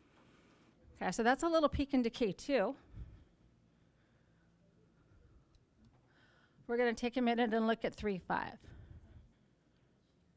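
A middle-aged woman speaks through a microphone in an echoing room, in short phrases.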